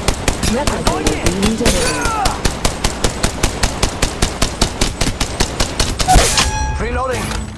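A rapid-fire gun shoots in fast, even bursts.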